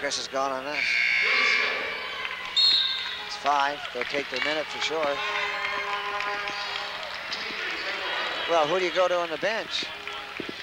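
A crowd cheers and murmurs in a large echoing gym.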